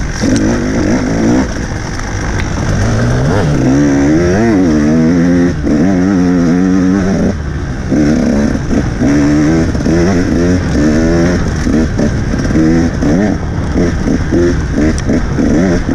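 A dirt bike engine revs loudly up and down, close by.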